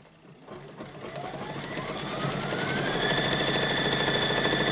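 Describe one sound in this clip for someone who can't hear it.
An embroidery machine starts up and speeds into a fast, steady whirring hum of stitching.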